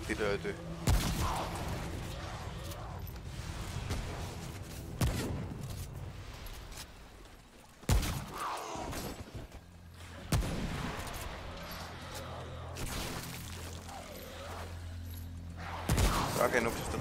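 Gunshots crack sharply now and then.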